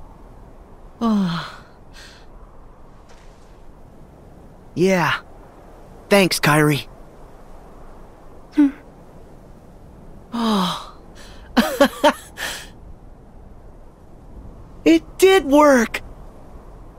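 A young man speaks cheerfully.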